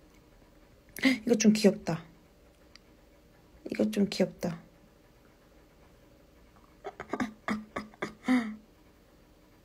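A young woman speaks in short bursts close to a phone.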